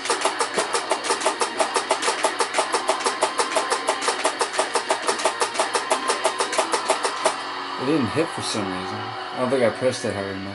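Rock music plays loudly from a television.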